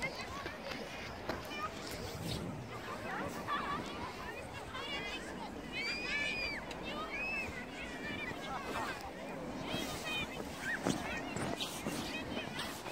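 Wind blows against the microphone.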